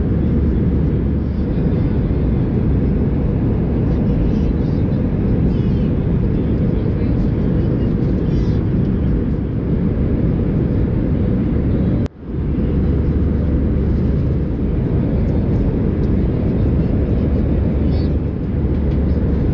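Paper pages rustle and flip as a menu is turned.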